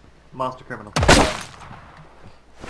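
A musket fires with a loud bang.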